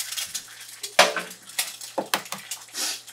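An egg cracks against an edge.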